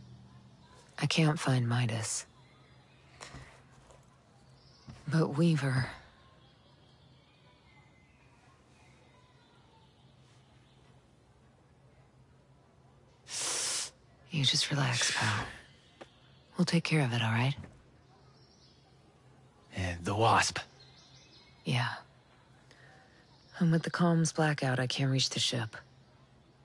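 A woman speaks calmly and seriously, close by.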